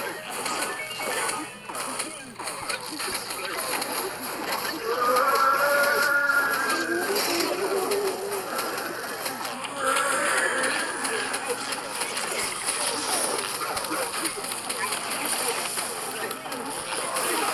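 Rapid popping shots and whooshes ring out in a busy game.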